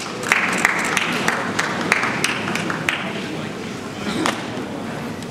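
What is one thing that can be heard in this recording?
A crowd claps and cheers in a large echoing hall.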